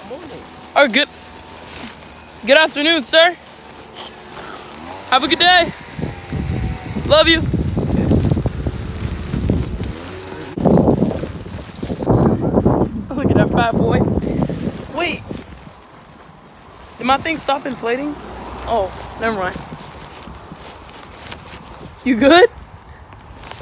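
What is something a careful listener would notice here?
A boy talks excitedly close by.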